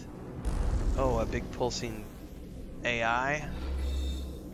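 A man speaks with animation through a headset microphone.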